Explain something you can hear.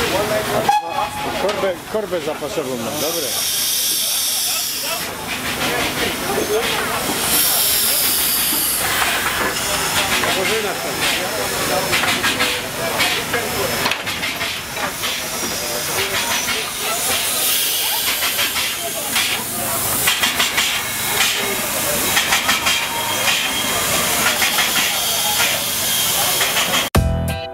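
A steam locomotive hisses steadily close by.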